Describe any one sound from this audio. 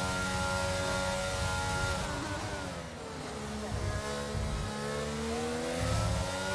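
A racing car engine whines at high revs, dropping as it slows and rising again as it speeds up.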